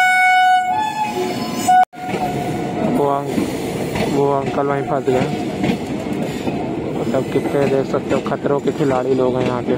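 A train rumbles and clatters past on the tracks.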